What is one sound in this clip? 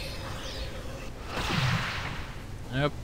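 A magic spell bursts with a whooshing rush.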